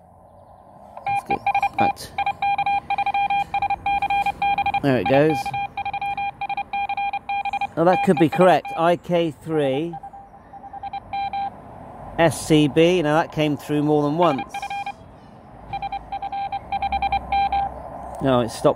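A radio receiver beeps out rapid Morse code tones.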